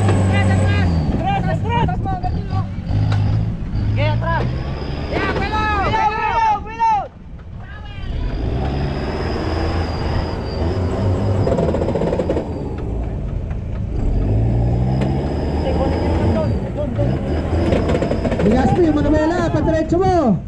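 Tyres crunch and spin on loose dirt.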